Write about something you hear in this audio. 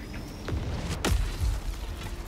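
A heavy metal pod slams into the ground with a loud thud.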